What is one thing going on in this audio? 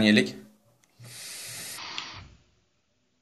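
A man inhales sharply through an e-cigarette with a steady hiss.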